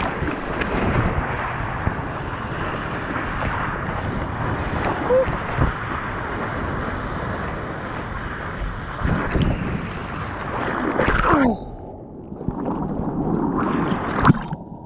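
Waves rush and churn close by.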